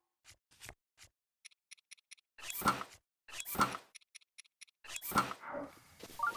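Soft menu clicks and chimes tick in quick succession.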